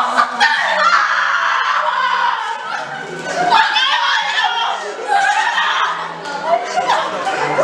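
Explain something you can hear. A group of young women laugh and shout in an echoing room.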